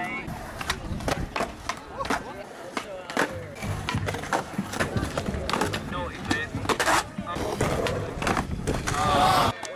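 A skateboard clacks sharply as it lands and flips.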